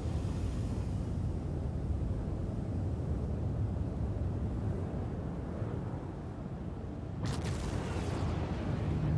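Spacecraft engines roar with a deep, steady rumble.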